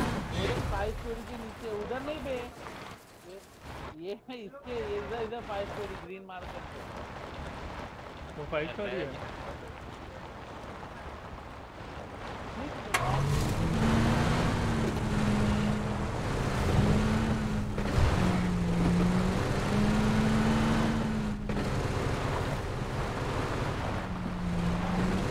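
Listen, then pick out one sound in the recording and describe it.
A truck engine drones while driving over rough ground.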